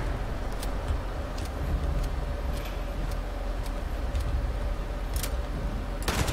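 Heavy armoured footsteps clank on the ground.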